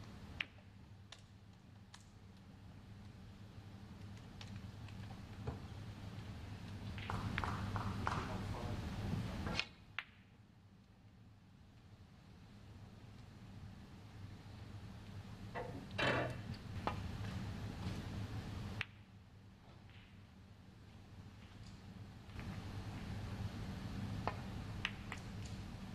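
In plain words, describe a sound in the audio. Snooker balls click sharply against each other on a table.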